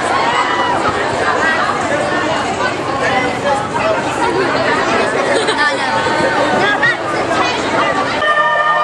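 A large outdoor crowd of young women cheers and screams with excitement.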